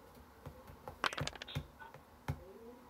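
Dice clatter as they roll across a board.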